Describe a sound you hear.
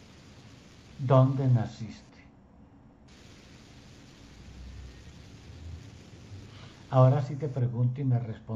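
A middle-aged man speaks briefly and calmly over an online call.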